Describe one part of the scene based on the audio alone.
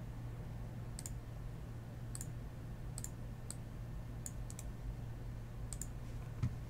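Cards click and rustle against fingers.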